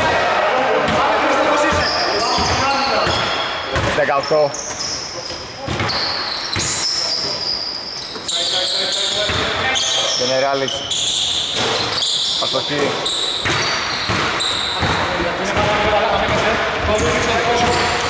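Young men shout and call out to each other across the echoing court.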